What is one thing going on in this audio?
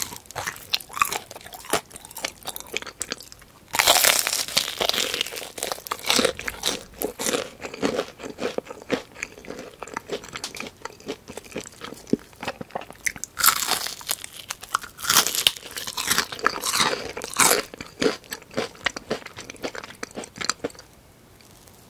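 A woman chews crispy fried chicken close to a microphone.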